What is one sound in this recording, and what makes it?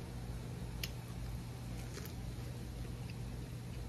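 A young woman chews crispy food.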